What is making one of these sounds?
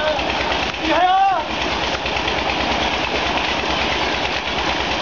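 Water splashes and churns loudly.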